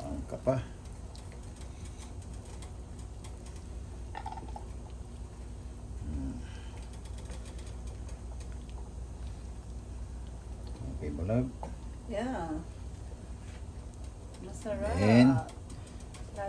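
A wooden spoon stirs through liquid in a pan.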